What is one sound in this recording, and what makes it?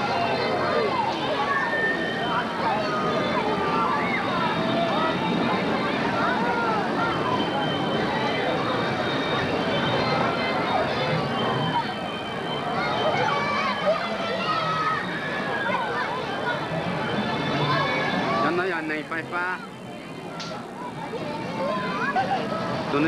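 A crowd of children and adults chatters and shouts nearby.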